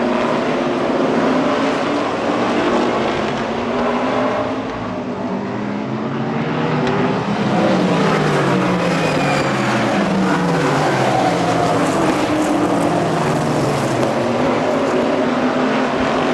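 Racing engines rise and fall in pitch as they pass.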